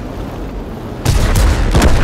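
A shell explodes with a blast.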